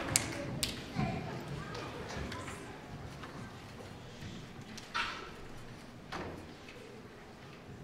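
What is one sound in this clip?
Children murmur and chatter on a stage.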